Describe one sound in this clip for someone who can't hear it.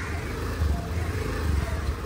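A motorbike engine hums nearby.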